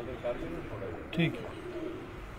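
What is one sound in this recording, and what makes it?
A pigeon flaps its wings briefly.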